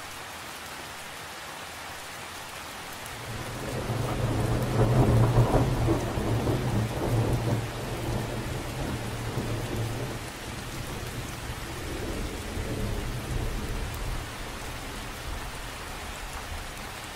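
Raindrops patter steadily on a lake's surface.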